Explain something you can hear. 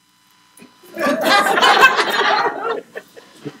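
An audience laughs.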